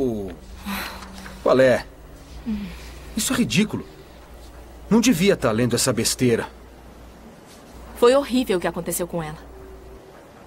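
A young woman speaks tearfully, close by.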